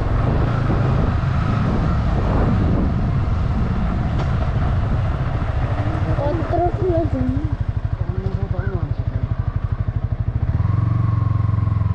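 A motorcycle engine hums while riding, then slows to a chugging idle and revs up again.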